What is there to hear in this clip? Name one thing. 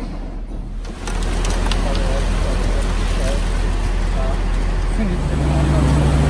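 Wet concrete pours and slides into a mould.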